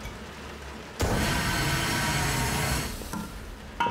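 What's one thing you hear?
A fire extinguisher sprays with a loud, steady hiss, then stops.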